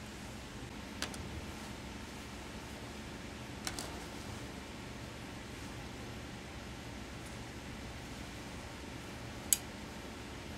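Small items click against a table now and then.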